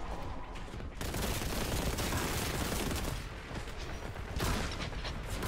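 A flame gun roars as it fires in bursts.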